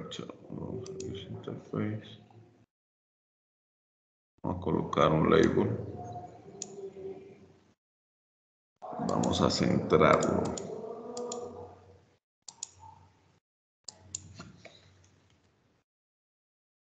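A man talks calmly over an online call, in short bursts with pauses.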